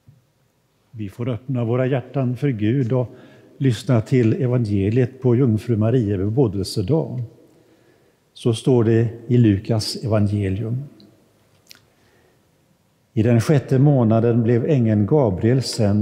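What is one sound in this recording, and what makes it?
An elderly man reads aloud calmly through a microphone in a large echoing hall.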